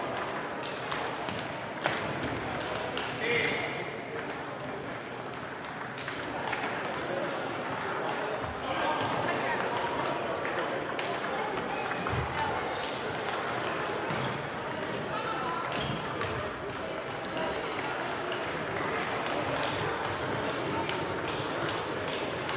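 Table tennis balls click on tables and paddles throughout a large echoing hall.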